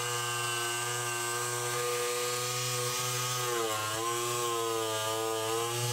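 An electric jigsaw whines steadily as it cuts, its pitch dipping briefly under load.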